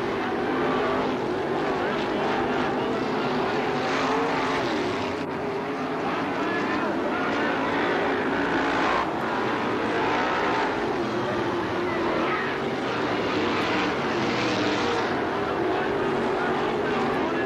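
Racing car engines roar loudly as the cars speed around a dirt track.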